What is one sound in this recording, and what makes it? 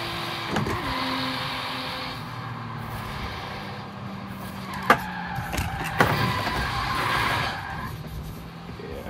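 Tyres screech as a car skids and drifts.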